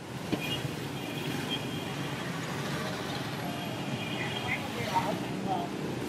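Tyres hiss on the wet road.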